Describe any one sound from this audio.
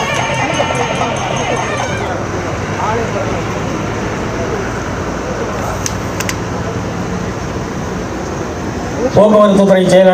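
A crowd of men murmurs and chatters outdoors.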